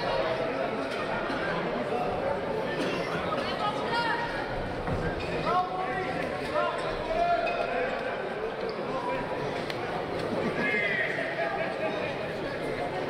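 A crowd murmurs and shouts in a large echoing hall.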